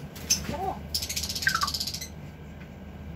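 A parrot squawks and whistles close by.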